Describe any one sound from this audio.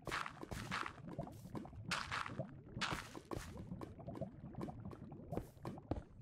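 Lava bubbles and pops.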